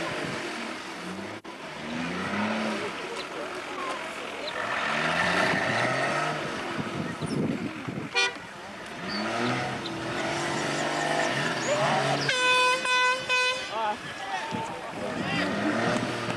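An off-road vehicle's engine revs and roars as it climbs rough ground.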